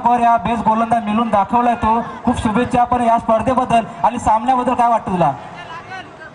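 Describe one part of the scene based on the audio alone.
A man announces loudly through a loudspeaker.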